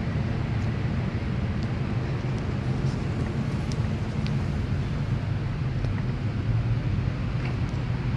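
Wind buffets a microphone outdoors with a steady low rumble.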